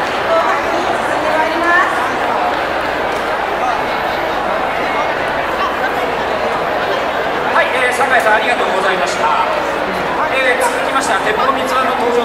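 Music plays loudly over loudspeakers from a stage.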